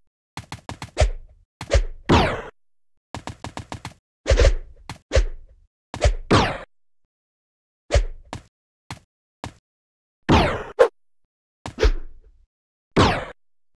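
Short electronic game sounds go off in quick bursts, each fading away.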